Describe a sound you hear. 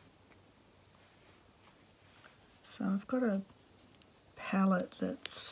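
Thread pulls softly through fabric.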